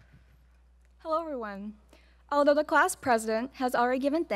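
A young woman speaks calmly into a microphone, heard through loudspeakers.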